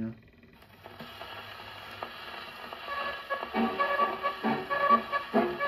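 An old gramophone plays a scratchy record.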